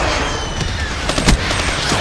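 Gunfire cracks in sharp bursts.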